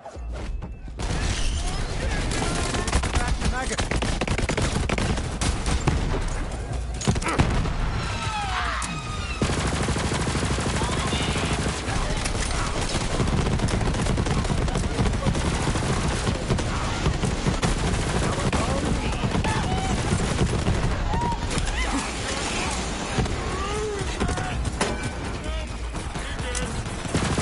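Guns fire rapidly in a game.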